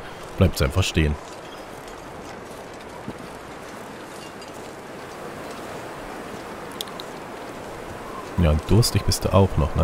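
Wind blows steadily over open snow.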